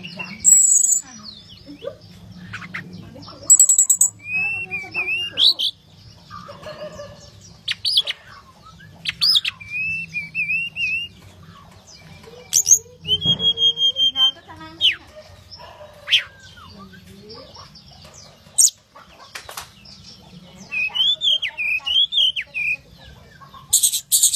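A small caged songbird sings a varied song of chirps, whistles and trills.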